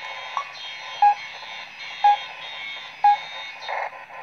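Electronic beeps from a video game sound through a speaker at a steady pace.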